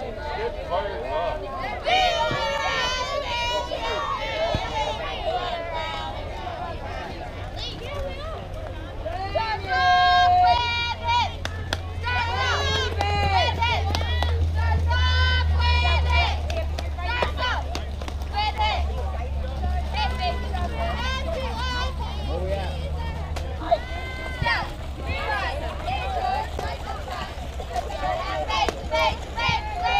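Young girls chant and cheer loudly nearby.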